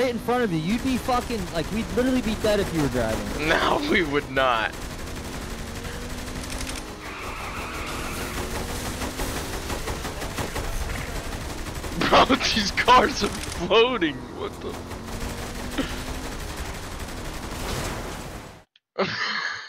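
Pistol shots crack in a rapid exchange of gunfire.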